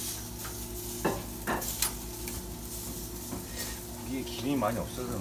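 Metal tongs clink against a grill.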